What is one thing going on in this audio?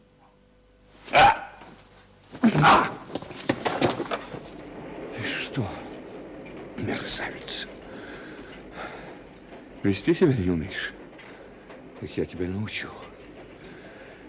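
A man speaks in a strained, emphatic voice.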